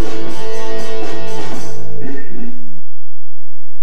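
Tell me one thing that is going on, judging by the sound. A band plays music.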